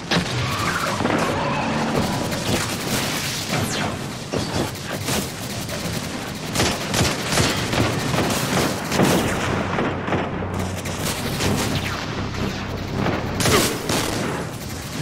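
Gunfire cracks.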